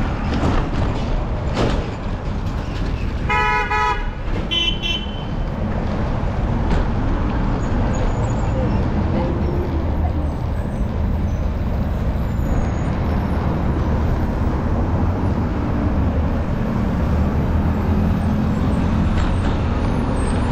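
Traffic hums along a nearby road.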